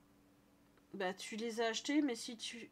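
A woman talks with animation into a close microphone.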